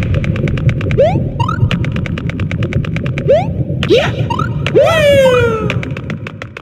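A cartoon jump effect chirps upward several times.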